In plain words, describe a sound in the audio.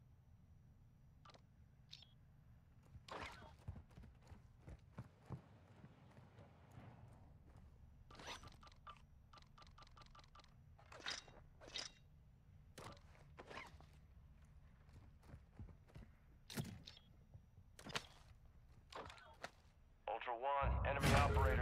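Short clicks and soft thuds sound as gear is picked up.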